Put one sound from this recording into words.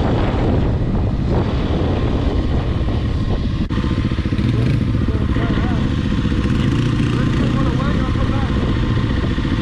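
A quad bike engine rumbles nearby.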